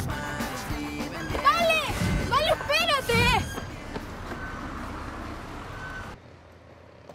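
A young girl sings loudly.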